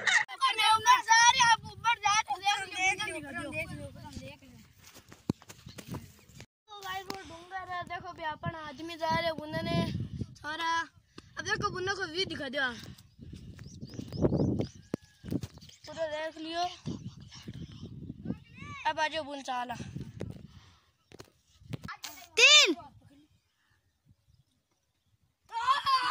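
A boy talks loudly and with animation close by.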